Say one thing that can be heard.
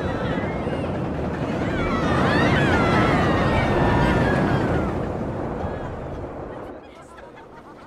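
A roller coaster train rumbles loudly along its track.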